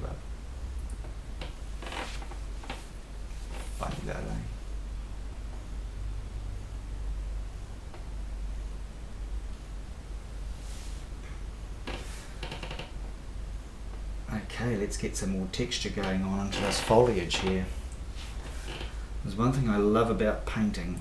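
A brush dabs and scrapes softly on a canvas.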